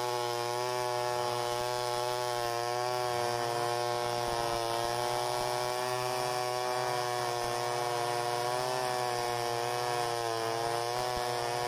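A second chainsaw whines further off, its pitch rising and falling.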